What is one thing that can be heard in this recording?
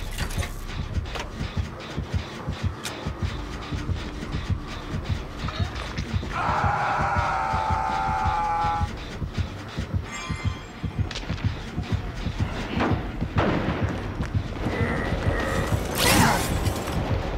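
Footsteps thud quickly over soft ground.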